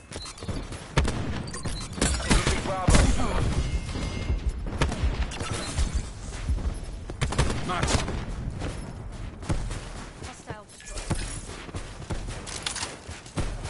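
Guns fire in sharp, rapid bursts.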